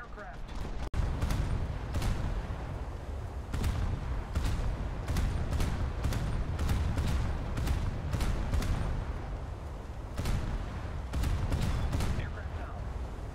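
Naval guns fire in repeated booming shots.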